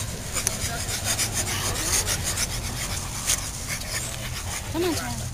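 A dog pants rapidly.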